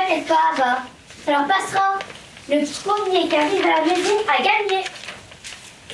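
A woman sings in a high, playful puppet voice close by.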